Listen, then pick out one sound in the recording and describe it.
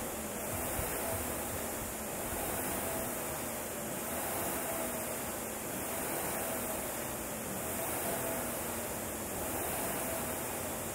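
A flywheel on a pull machine whirs in rhythmic surges with each pull.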